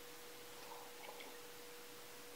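A woman sips a drink from a mug.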